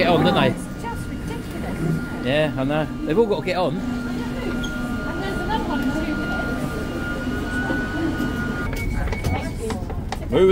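Voices of a crowd chatter nearby in an echoing underground space.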